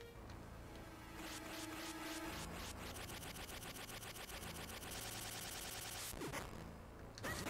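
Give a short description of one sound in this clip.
Upbeat video game music plays steadily.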